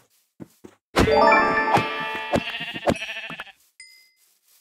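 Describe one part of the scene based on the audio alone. A pig squeals sharply.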